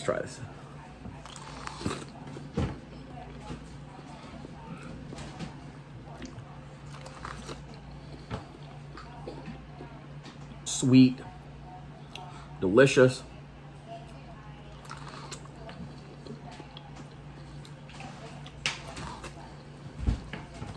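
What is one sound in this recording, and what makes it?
A man chews noisily up close.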